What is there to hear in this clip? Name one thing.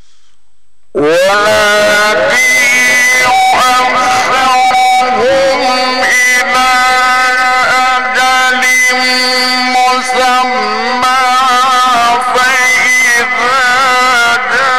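A man chants in a long, melodic voice through a microphone and loudspeakers.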